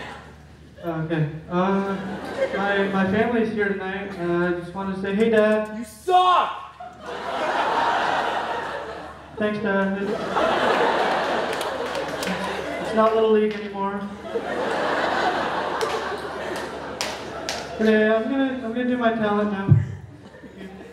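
A young man sings through a microphone and hall loudspeakers.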